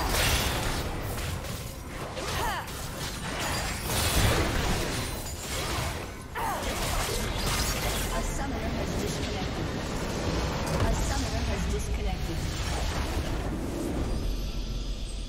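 Magic blasts and explosions crash in a busy battle.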